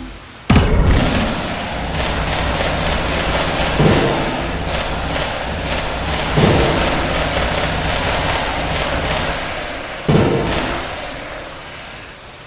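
Magical zaps crackle rapidly over and over.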